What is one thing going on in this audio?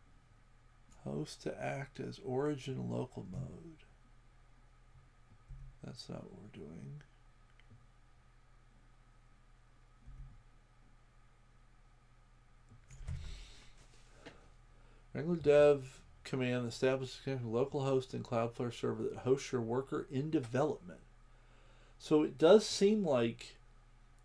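A man talks calmly into a microphone, in short bursts with pauses.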